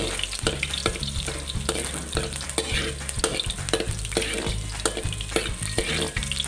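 Oil sizzles softly in a pan.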